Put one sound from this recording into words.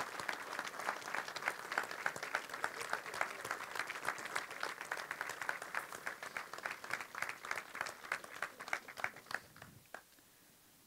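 A large audience claps and applauds outdoors.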